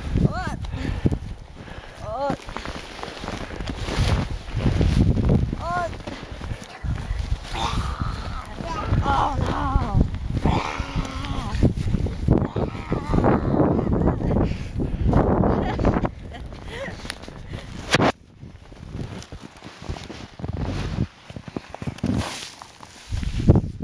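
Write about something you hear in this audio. Snow crunches and scrapes under hands and feet.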